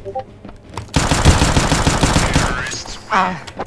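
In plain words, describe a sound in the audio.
Gunshots ring out in rapid succession.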